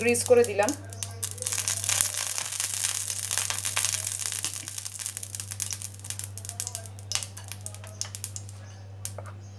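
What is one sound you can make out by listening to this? Hot oil sizzles in a frying pan.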